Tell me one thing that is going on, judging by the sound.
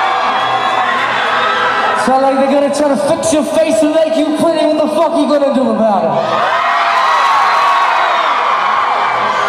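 A band plays loud rock music through loudspeakers.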